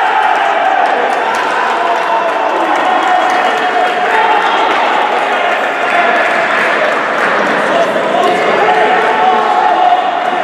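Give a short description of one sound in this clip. A large crowd cheers and chants loudly in an echoing hall.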